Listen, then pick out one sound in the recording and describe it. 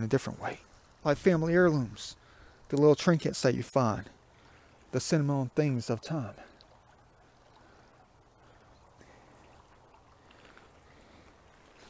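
A shallow stream gently trickles and murmurs.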